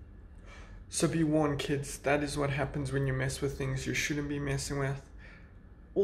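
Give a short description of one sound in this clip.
A young man talks up close, with animation.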